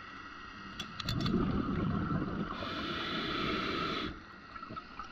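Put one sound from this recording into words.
A diver breathes loudly through an underwater regulator, with bubbling and hissing.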